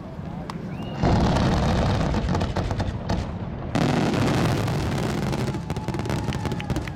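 Fireworks boom loudly outdoors, echoing.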